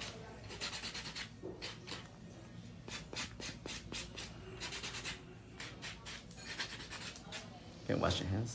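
A nail file rasps quickly back and forth against a fingernail.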